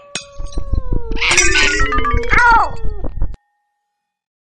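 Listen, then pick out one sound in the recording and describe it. A ceramic vase shatters with a crash.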